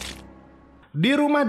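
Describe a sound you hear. A young girl cries out tearfully.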